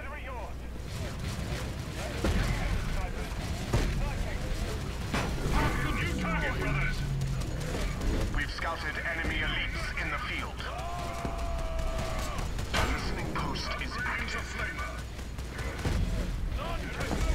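Weapons fire and explosions crackle in a busy battle.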